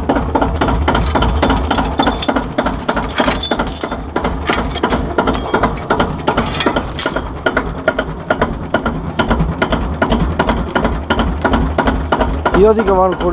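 A tractor engine idles with a steady low chugging.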